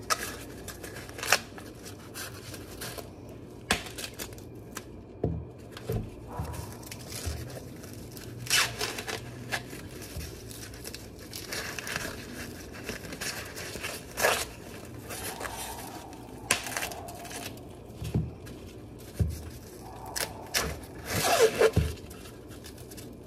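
Dry corn husks rustle and tear as they are peeled from ears of corn.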